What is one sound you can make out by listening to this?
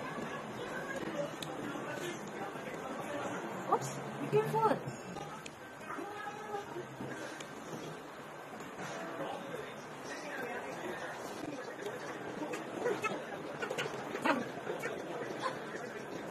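A little girl babbles and squeals close by.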